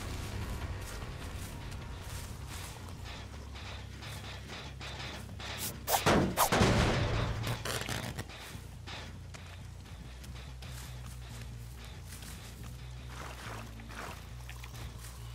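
Footsteps crunch through grass and undergrowth.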